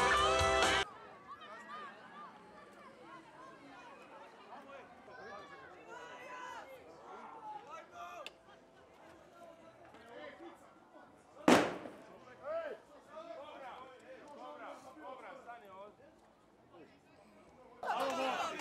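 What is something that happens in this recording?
A crowd of men chatters and shouts outdoors.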